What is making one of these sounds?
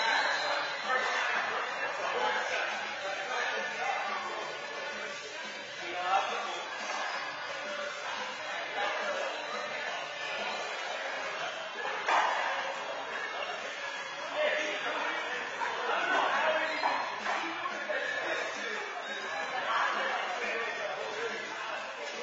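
Men talk in an echoing indoor court.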